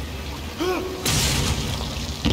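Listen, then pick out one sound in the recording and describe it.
A heavy blow lands with a wet crunch.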